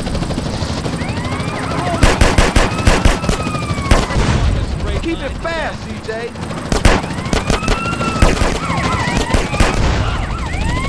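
Police sirens wail.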